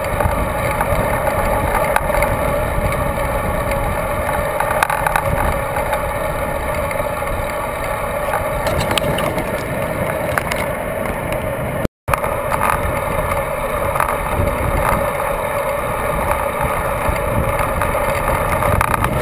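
Bicycle tyres roll and hum on a paved road.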